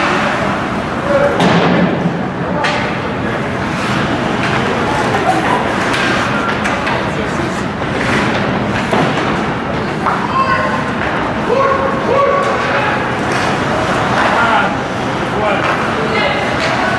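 Players shout across a large echoing arena.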